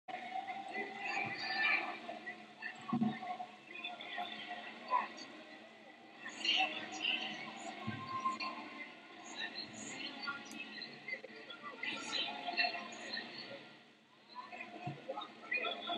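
A large crowd chatters and calls out in a large echoing arena.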